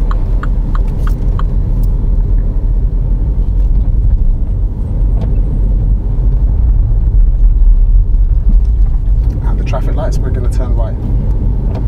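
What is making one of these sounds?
A car engine hums with a low, steady rumble from inside the car.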